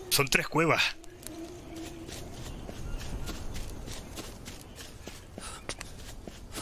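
Footsteps tread on soft forest ground.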